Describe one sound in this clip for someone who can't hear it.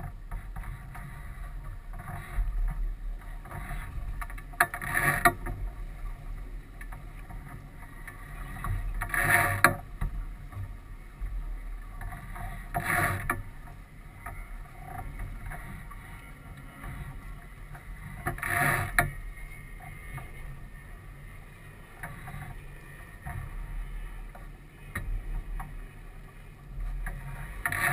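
Wind rumbles steadily across the open water.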